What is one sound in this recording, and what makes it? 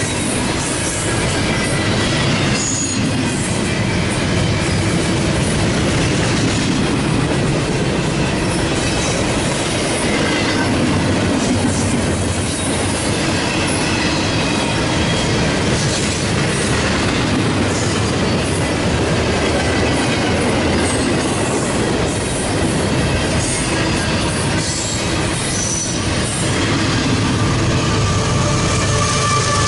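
A long freight train rumbles and clatters steadily past nearby.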